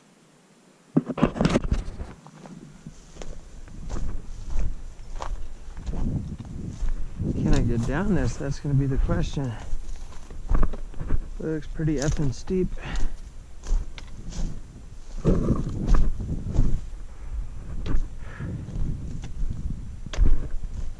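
Footsteps crunch over dry grass and loose rock.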